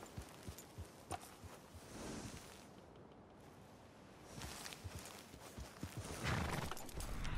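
Horse hooves thud on soft grass in an uneven walking rhythm.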